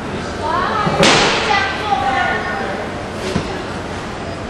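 A paper seat knocks against a hard floor.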